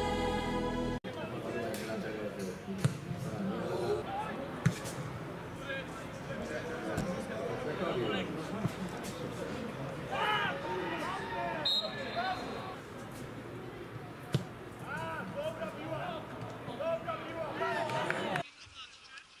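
Footballers shout to each other outdoors.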